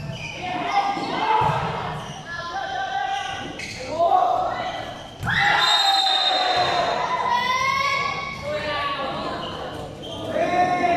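Children shout and cheer loudly in a large echoing hall.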